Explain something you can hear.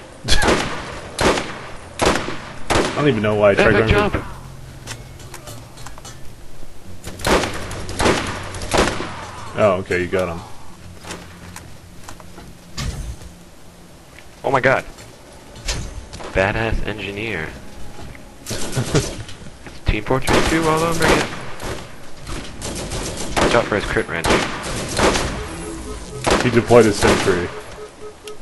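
A rifle fires loud, sharp single shots now and then.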